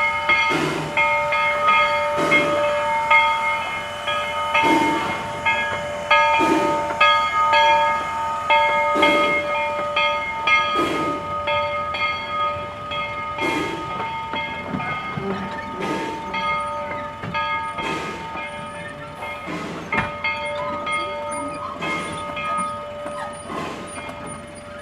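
Train wheels clack over rail joints in a slow, regular beat.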